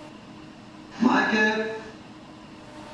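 An elderly man speaks through an online call.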